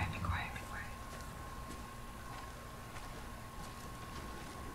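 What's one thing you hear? Footsteps crunch softly on a dirt path.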